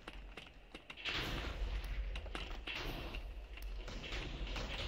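Fireworks pop and crackle overhead.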